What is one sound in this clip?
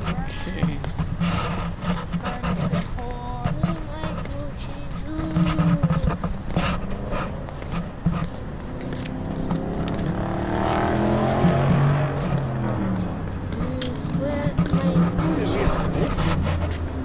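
Young men talk casually close by.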